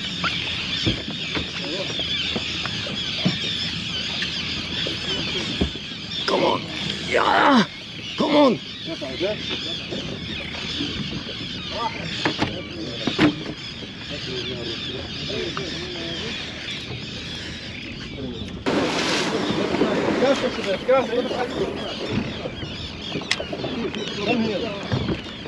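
Wind blows steadily outdoors on open water.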